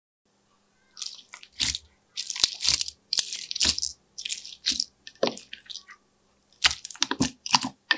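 Soft slime squishes and pops under pressing hands.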